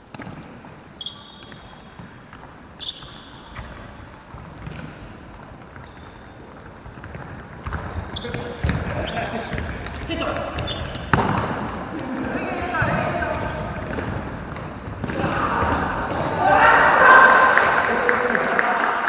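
Shoes squeak on a wooden gym floor in a large echoing hall.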